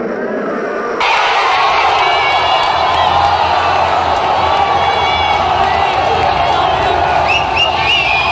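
A young man shouts and cheers close by.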